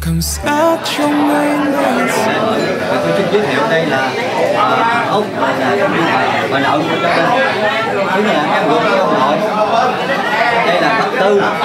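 Several men and women talk quietly in the background.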